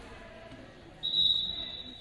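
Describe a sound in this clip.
A referee blows a short whistle in an echoing gym.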